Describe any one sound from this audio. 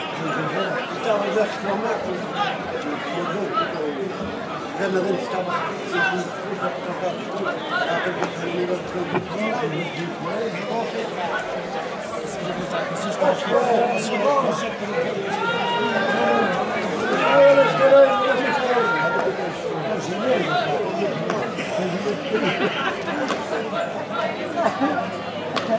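A large outdoor crowd of men and women chatters and calls out.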